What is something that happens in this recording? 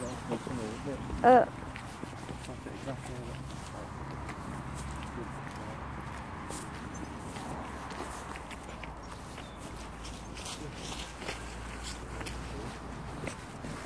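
Footsteps scuff along a pavement outdoors.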